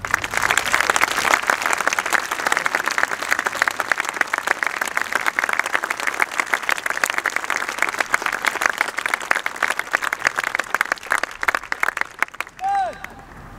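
A snare drum corps plays rapid, crisp rolls outdoors.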